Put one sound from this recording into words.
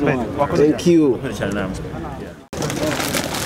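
A man speaks into microphones close by.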